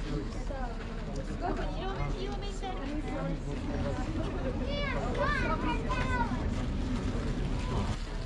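Several adults chat casually outdoors, close by.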